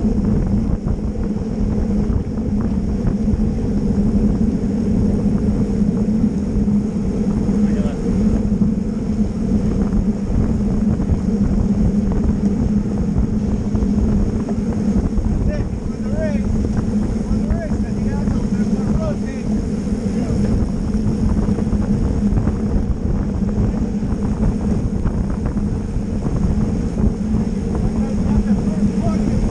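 Wind rushes loudly past the microphone outdoors.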